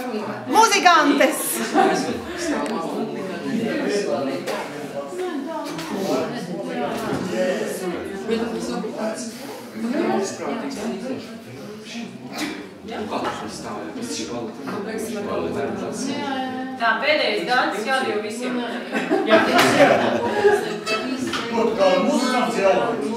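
Accordions play a lively tune.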